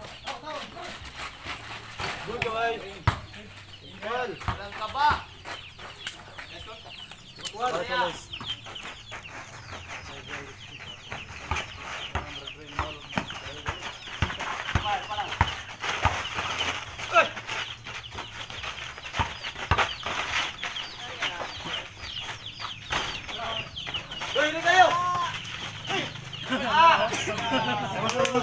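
A basketball bounces on hard dirt ground.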